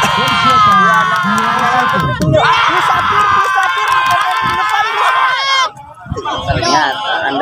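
A large outdoor crowd cheers and shouts loudly.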